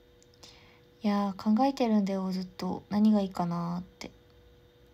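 A young woman speaks softly close to the microphone.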